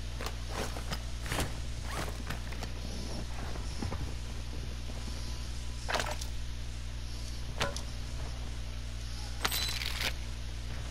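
Footsteps thud on hard stairs and floor.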